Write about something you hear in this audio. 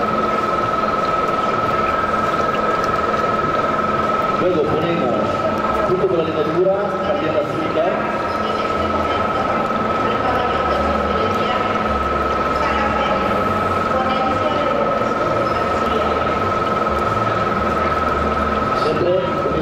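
A dough mixer hums steadily as its hook kneads dough.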